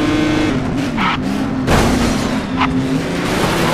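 Race cars scrape and bump against each other.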